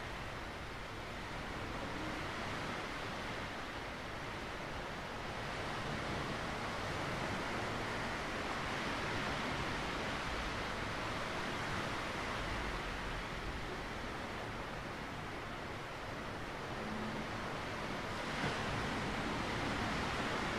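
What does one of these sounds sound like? Wind blows outdoors.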